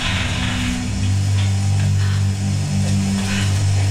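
Footsteps clang on a metal floor.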